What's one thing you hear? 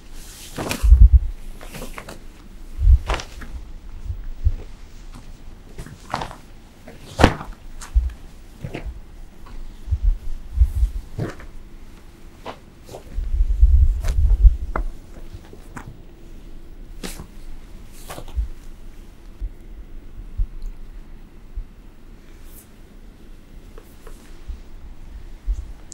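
Bare feet thump and shuffle on a wooden stage floor.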